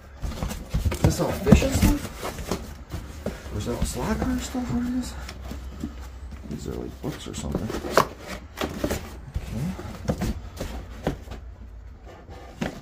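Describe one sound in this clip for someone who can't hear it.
Hard plastic boxes knock and clatter against each other.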